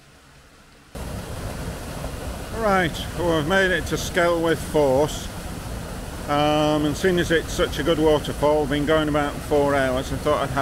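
A waterfall rushes and roars nearby.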